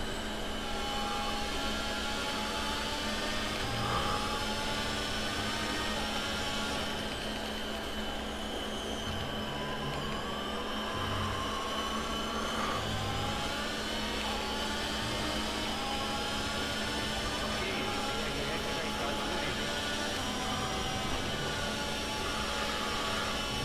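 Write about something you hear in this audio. A racing car engine screams at high revs, rising and dropping through gear changes.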